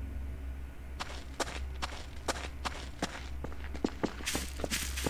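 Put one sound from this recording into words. Footsteps fall on cobblestones.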